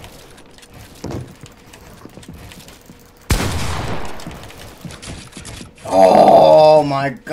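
Wooden walls snap into place with quick knocks.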